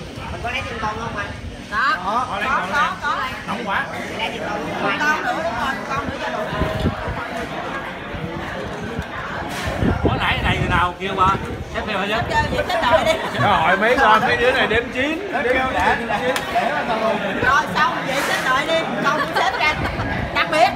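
Dishes and glasses clink on a table.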